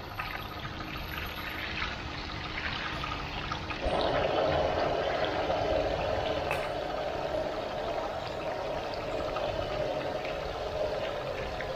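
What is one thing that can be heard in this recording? A metal skimmer scrapes and clinks against a pan.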